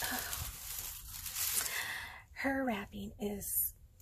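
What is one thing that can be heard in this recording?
Foil tinsel rustles softly as a hand moves it.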